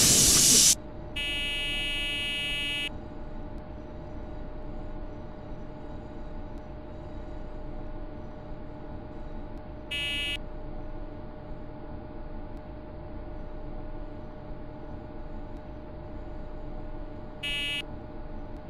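A train cab hums steadily at a standstill.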